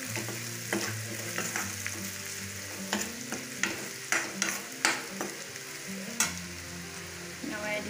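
A metal spoon scrapes and knocks against a frying pan.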